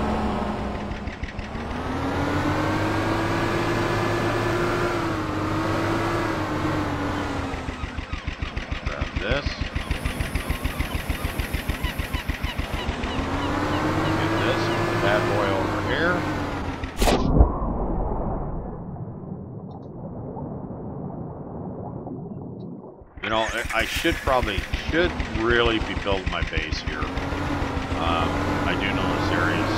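A small outboard motor hums steadily, its pitch rising and falling as it revs.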